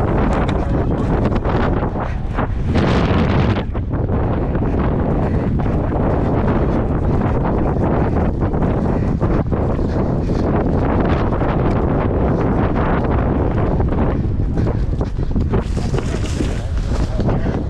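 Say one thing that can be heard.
Horse hooves pound rhythmically on soft turf at a gallop.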